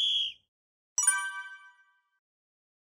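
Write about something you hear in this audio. A game chime rings brightly and fades.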